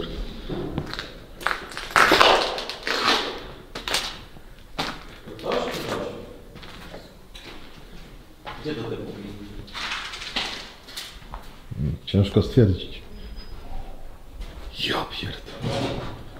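Footsteps crunch on debris in an echoing empty building.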